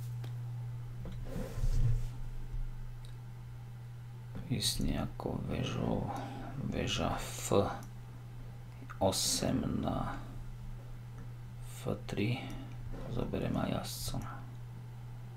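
A man speaks calmly and thoughtfully, close to a microphone.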